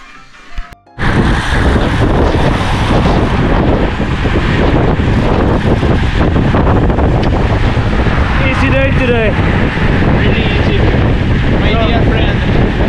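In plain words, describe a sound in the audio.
Strong wind rushes past a moving cyclist.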